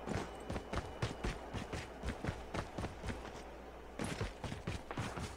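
Quick footsteps crunch on dry ground at a steady running pace.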